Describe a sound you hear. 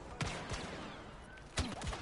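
A blaster rifle fires sharp shots.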